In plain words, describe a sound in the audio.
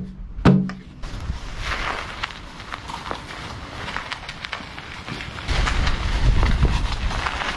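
A plastic barrel rolls over dry dirt and grass.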